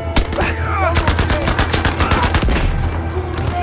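A submachine gun fires rapid bursts.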